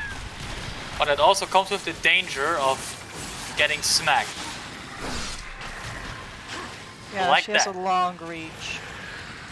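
A huge monster roars with a deep, bending growl.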